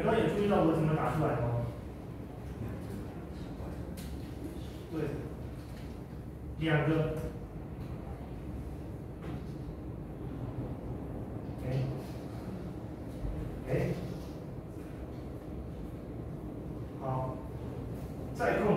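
A man speaks calmly in short bursts.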